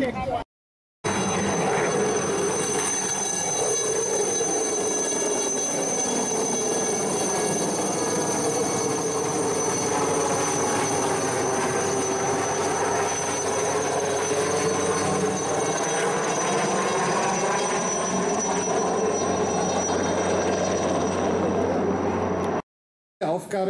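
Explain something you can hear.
A helicopter flies low overhead with loud rotor and engine noise, its pitch dipping as it passes.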